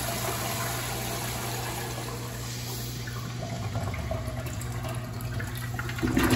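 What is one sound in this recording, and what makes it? Water rushes and swirls noisily as a toilet flushes.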